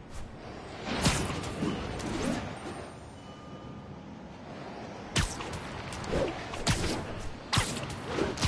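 Web lines shoot out with short, sharp snaps.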